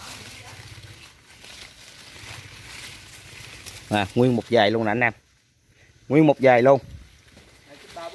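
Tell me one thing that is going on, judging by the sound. Leaves rustle as a hand pushes through young plants.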